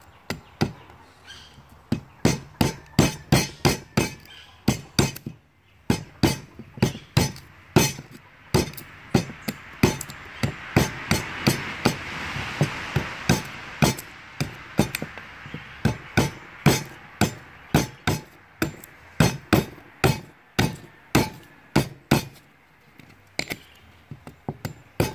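A knife blade chops into wood in quick, repeated strokes.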